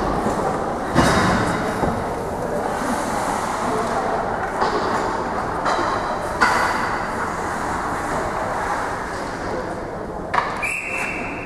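A puck and sticks clack sharply now and then in a large echoing arena.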